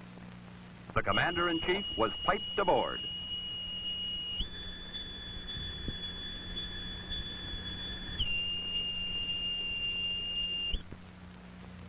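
A sailor blows a shrill boatswain's pipe, trilling and then holding long notes that step up and back down.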